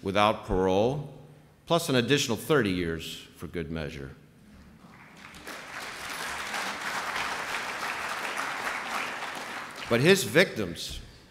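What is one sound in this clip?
A man speaks into a microphone to an audience, pausing between phrases.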